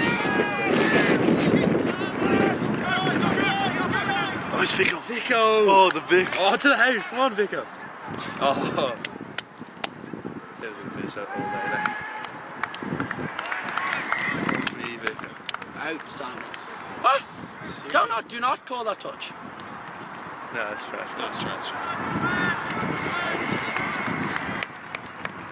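Spectators shout and cheer outdoors at a distance.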